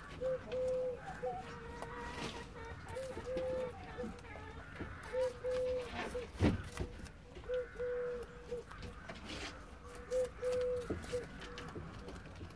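A rabbit crunches and nibbles on food close by.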